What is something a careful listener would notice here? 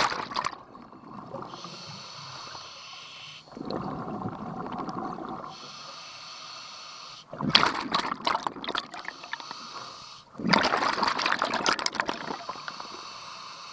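Bubbles from a diver's regulator gurgle and rumble underwater in loud bursts.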